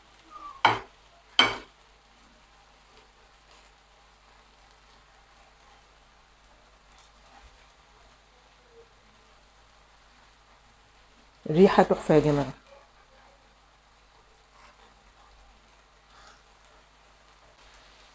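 A spatula softly scrapes and stirs food in a pan.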